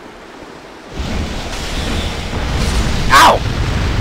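Flames burst and roar loudly.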